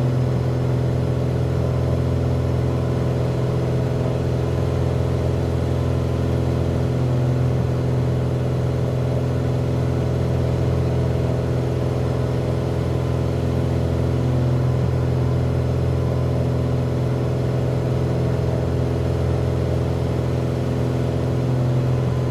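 A small propeller plane's engine drones steadily, heard from inside the cockpit.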